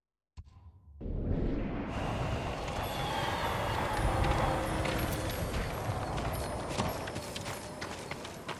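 Wind gusts whoosh loudly outdoors.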